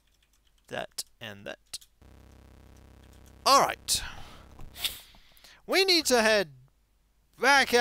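Chiptune game sound effects chirp and bleep in short bursts.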